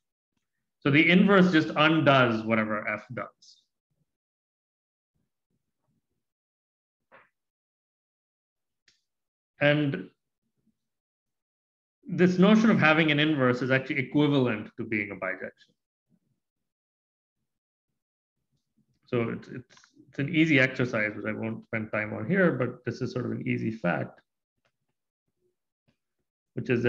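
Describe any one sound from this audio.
A man speaks calmly and explains, close to a microphone, in short bursts with pauses.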